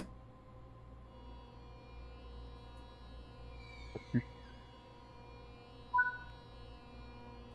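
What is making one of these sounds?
An electric train's motor whines steadily as the train starts to move.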